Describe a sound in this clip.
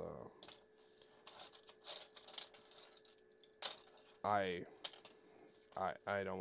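Small plastic pieces click and clatter as they are handled.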